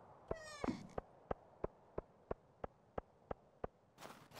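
Soft footsteps tap at an even pace.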